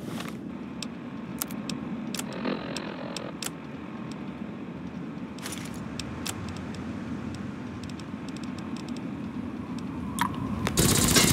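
Short soft clicks tick as menu items are picked.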